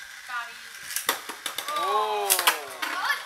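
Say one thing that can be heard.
Plastic toy parts click and clatter together.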